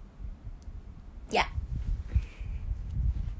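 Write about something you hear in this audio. Hands rustle against a phone microphone.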